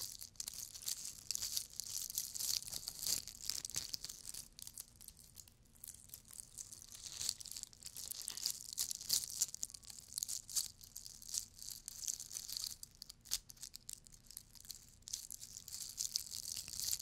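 Fingernails scratch and tap on a glittery ornament close to a microphone.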